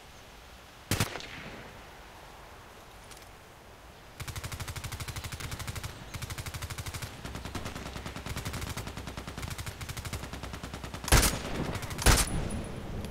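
A rifle fires single sharp, loud shots.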